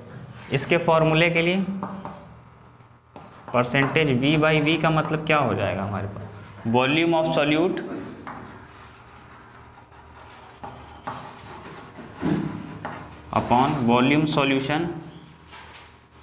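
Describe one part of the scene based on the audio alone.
A man speaks calmly and clearly, explaining as he teaches.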